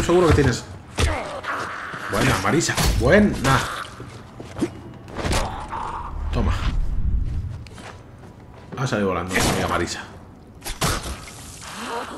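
A machete hacks into flesh with heavy, wet thuds.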